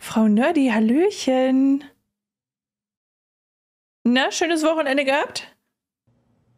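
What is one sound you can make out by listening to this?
A young woman sings short phrases close to a microphone.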